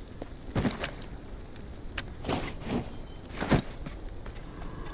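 A bag rustles and clatters as it is handled.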